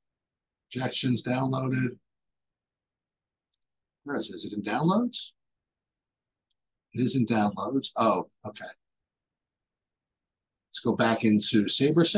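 A man talks calmly and close to a microphone, in short bursts with pauses.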